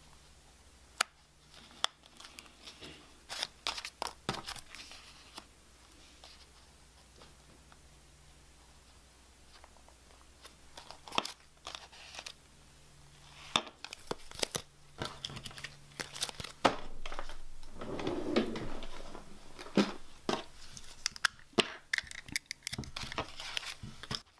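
Cards tap and click against a page.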